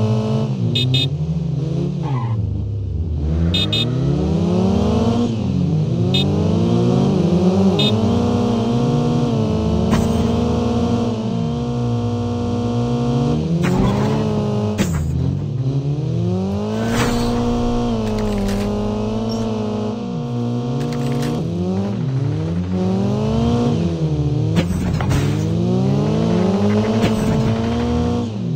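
A car engine revs up and down, rising and falling in pitch as gears shift.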